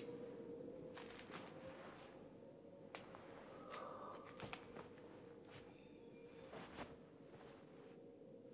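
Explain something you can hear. Cloth rustles and crinkles as a man handles it.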